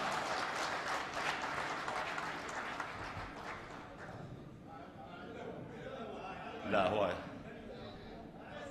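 A middle-aged man reads aloud into a microphone in a large echoing hall.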